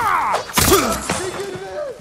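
A sword slashes with a sharp, wet strike.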